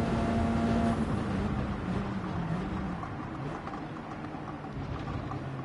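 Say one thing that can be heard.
A racing car engine winds down as the car brakes.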